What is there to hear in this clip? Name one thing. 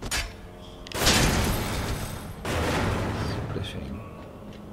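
Wood cracks and breaks apart with a loud crash.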